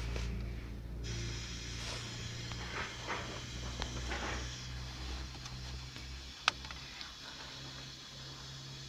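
A car radio comes on with hissing static and sound.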